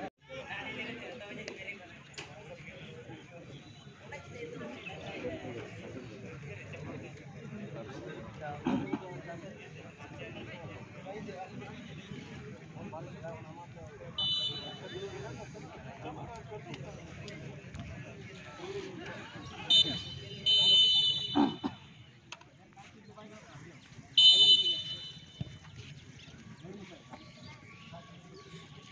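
Voices of players and onlookers call out across an open field.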